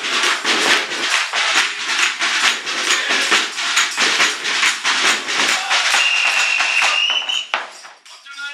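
A crowd claps along in a quick, steady rhythm.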